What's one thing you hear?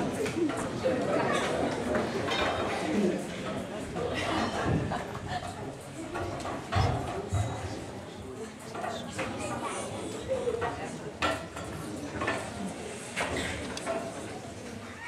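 Children speak and call out lines loudly in a large echoing hall.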